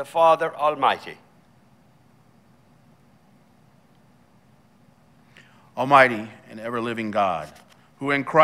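A man speaks slowly and calmly through a microphone in an echoing room.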